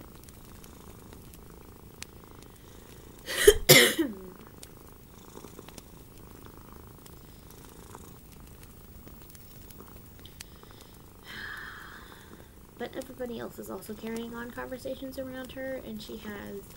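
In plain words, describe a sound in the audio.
Yarn rustles softly as hands crochet.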